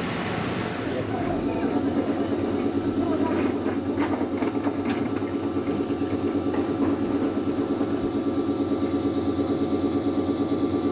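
A train's motor hums steadily.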